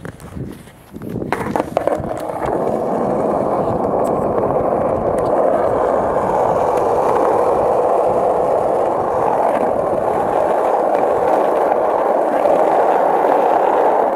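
Small wheels roll steadily and roughly over asphalt.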